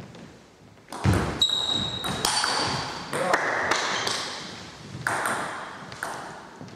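A ping pong ball clicks sharply off paddles and a table in a large echoing hall.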